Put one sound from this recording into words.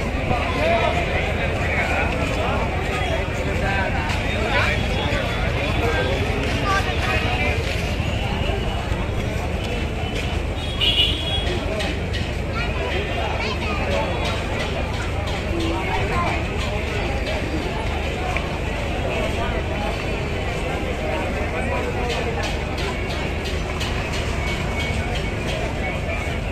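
A large crowd chatters and murmurs all around, outdoors.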